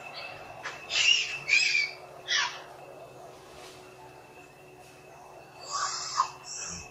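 A young monkey squeals in short, shrill bursts.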